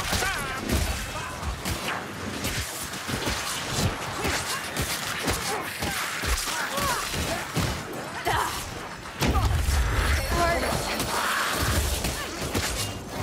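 Creatures squeal and shriek in a fight.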